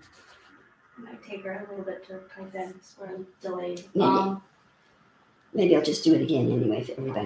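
An older woman speaks calmly close by.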